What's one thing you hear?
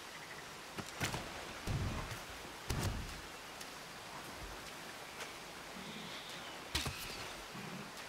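Weapon blows strike with heavy thuds.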